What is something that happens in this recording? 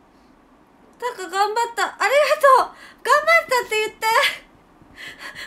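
A young woman speaks animatedly and close by.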